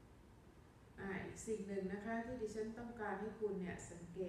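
An older woman speaks calmly into a microphone.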